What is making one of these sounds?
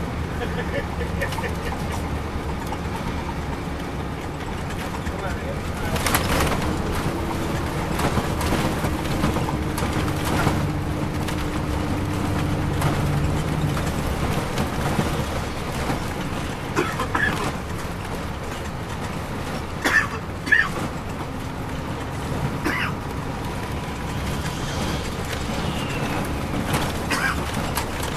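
A diesel coach bus engine drones, heard from inside the cabin.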